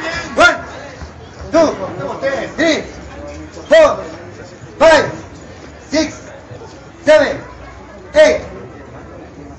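A man calls out short words loudly at a steady, even pace, nearby and outdoors.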